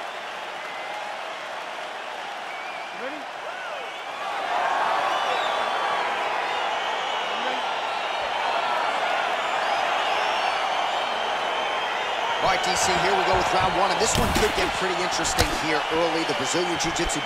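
A large crowd cheers and murmurs loudly.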